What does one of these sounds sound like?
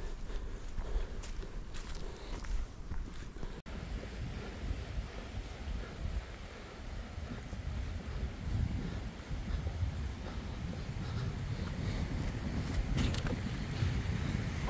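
Footsteps crunch on a rocky dirt trail.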